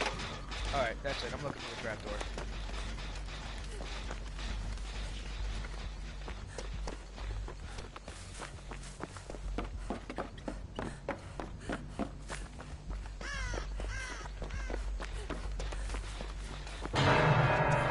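Quick footsteps rustle through grass and leaves.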